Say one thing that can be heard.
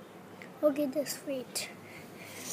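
A young boy speaks briefly close by.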